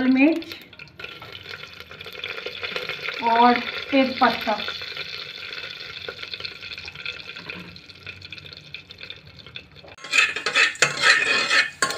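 Spices sizzle and crackle in hot oil.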